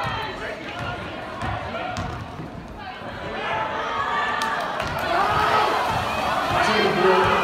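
A crowd talks and cheers in a large echoing gym.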